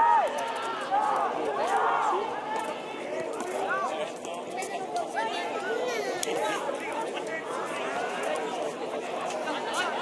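Players shout to each other far off across an open field.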